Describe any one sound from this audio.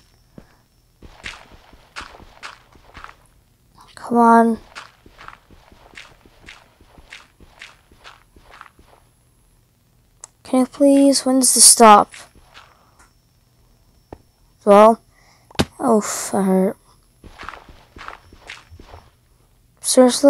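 A pickaxe digs into dirt with repeated soft crunching knocks.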